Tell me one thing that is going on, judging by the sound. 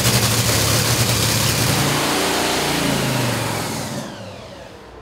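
A dragster engine roars loudly at close range.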